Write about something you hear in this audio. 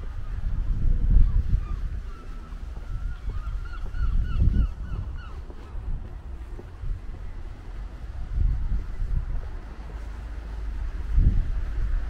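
Wind gusts rumble across the microphone outdoors.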